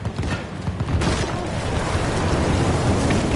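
Bullets tear through leafy bushes nearby with a rustling crackle.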